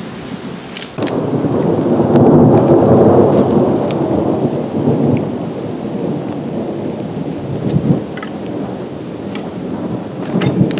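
Footsteps rustle and crunch through leafy undergrowth close by.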